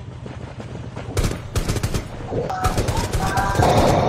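Melee weapons swing and strike in a close fight.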